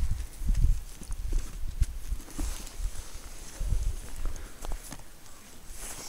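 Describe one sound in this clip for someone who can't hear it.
Snow crunches under gloved hands.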